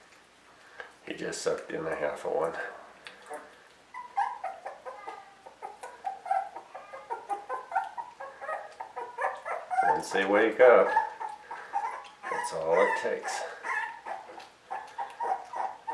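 A young puppy whimpers and squeals up close.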